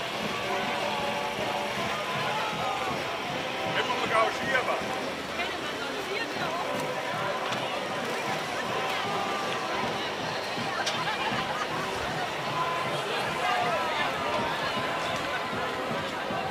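A crowd of men, women and children chatters outdoors.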